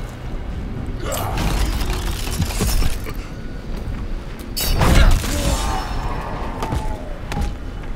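Swords clash and strike with sharp impacts.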